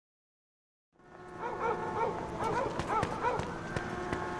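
Footsteps hurry across pavement.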